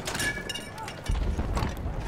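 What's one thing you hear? A heavy shell slides into a gun's breech with a metallic clank.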